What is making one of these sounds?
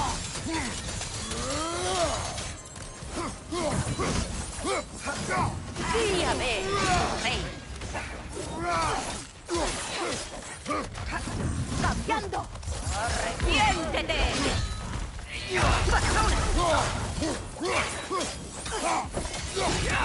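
Heavy metal weapons clash and strike repeatedly.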